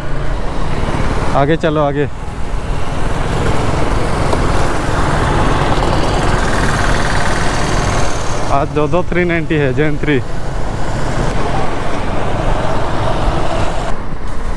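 Wind roars steadily past a moving motorcycle.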